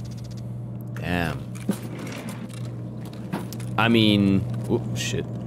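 A young man speaks casually into a microphone.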